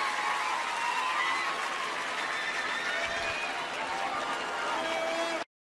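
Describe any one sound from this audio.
A large crowd cheers and screams loudly in a big arena.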